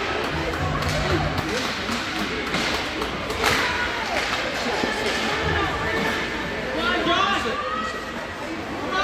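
Ice skates scrape across the ice in a large echoing rink.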